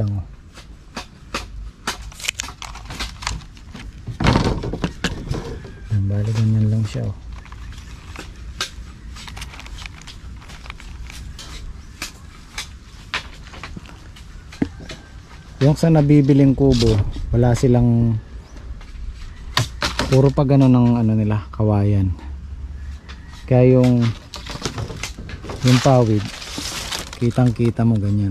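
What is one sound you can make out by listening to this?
Dry bamboo strips rustle and click under a hand.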